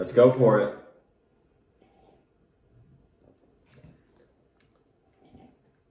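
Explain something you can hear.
Young men sip and swallow drinks quietly.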